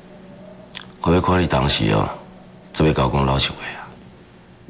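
A middle-aged man speaks slowly and calmly, close by.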